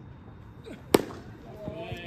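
A bat sharply cracks against a ball.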